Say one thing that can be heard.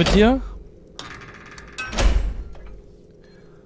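A heavy metal lever clanks as it is pulled.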